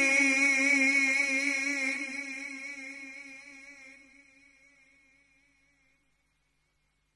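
A man sings a long, wavering note into a microphone, then slowly fades away.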